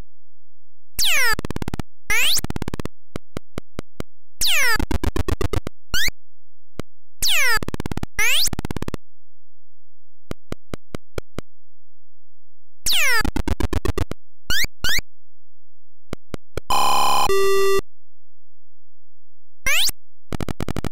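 Electronic beeps from a retro computer game sweep down in pitch, again and again.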